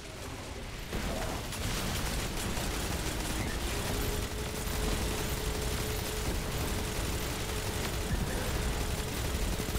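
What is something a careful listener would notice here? A heavy gun fires rapidly over and over.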